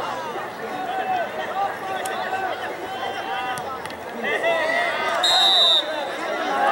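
A crowd of spectators shouts and chatters outdoors.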